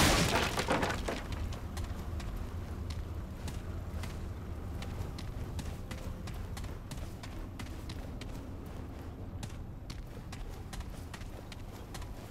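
Footsteps crunch over a gritty floor.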